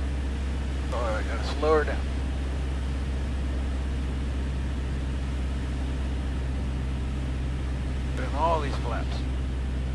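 A middle-aged man speaks briefly over a radio headset microphone.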